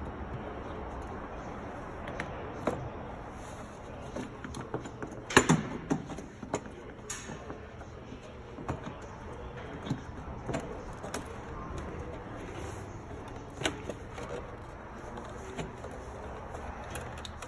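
Metal tools clink and knock against engine parts.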